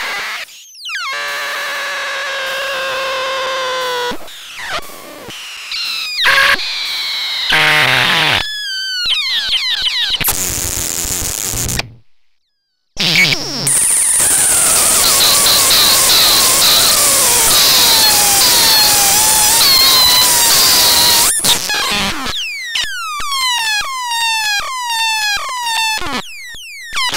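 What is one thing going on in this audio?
A modular synthesizer plays shifting electronic tones.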